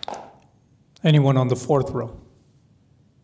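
A man speaks briefly through a microphone in a large room.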